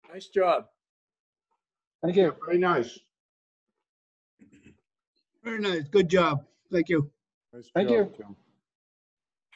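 An older man speaks calmly and close up, in short phrases with pauses.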